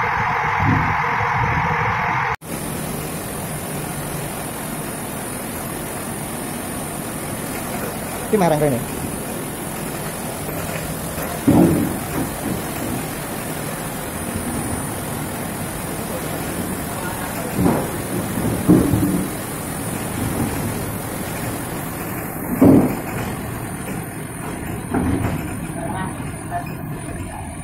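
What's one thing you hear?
A slat chain conveyor runs with a steady mechanical rattle.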